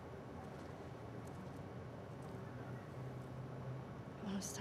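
A young woman speaks quietly and calmly.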